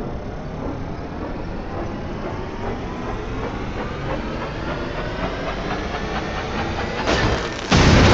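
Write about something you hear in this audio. A torch cuts through metal with a rising, grinding whine.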